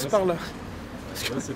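A man laughs nearby.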